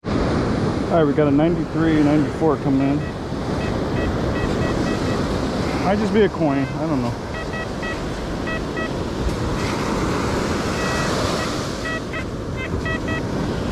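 A metal detector beeps in short electronic tones.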